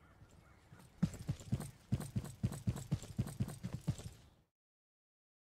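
Footsteps walk at a steady pace.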